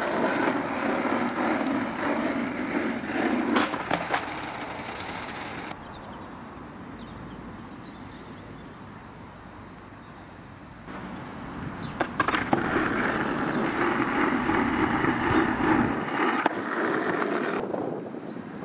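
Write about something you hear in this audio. Skateboard wheels roll with a rough, steady rumble over asphalt.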